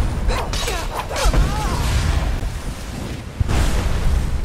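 A sword clashes and strikes in a fight.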